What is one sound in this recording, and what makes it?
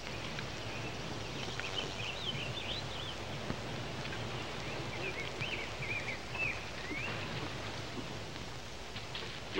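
Horses' hooves thud on soft ground.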